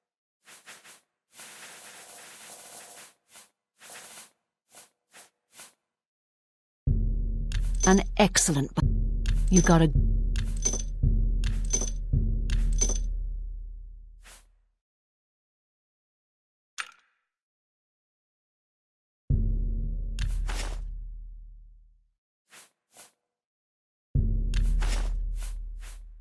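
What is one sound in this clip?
Soft interface clicks tick as a menu is scrolled.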